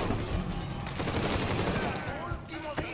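An automatic rifle fires rapid bursts of gunshots.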